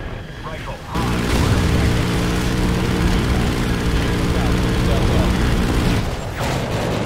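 Explosions from an airstrike boom and rumble.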